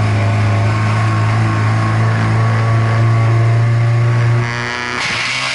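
A race car engine idles loudly and steadily inside the cabin.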